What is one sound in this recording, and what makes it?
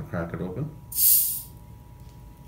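A soda bottle hisses sharply as its cap is twisted open.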